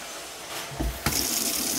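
Water runs from a tap into a metal sink.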